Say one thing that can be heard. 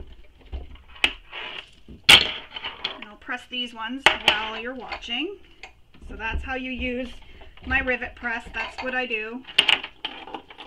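A hand press clacks shut with a sharp metallic snap.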